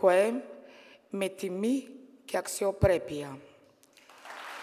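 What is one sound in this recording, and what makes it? An elderly woman speaks forcefully through a microphone in a large hall.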